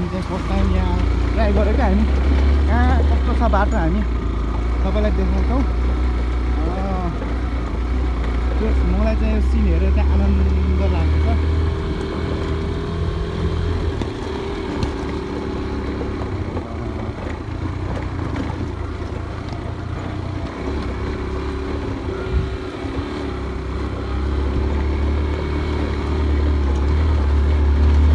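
A motorcycle engine rumbles steadily, rising and falling as it rides.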